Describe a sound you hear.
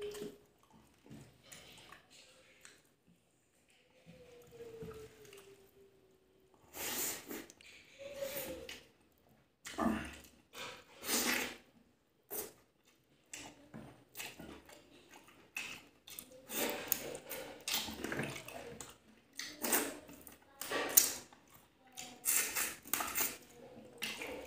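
A man chews and smacks his lips loudly, close to a microphone.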